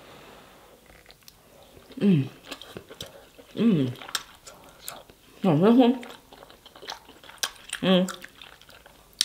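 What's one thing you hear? A young woman chews and smacks wetly close to a microphone.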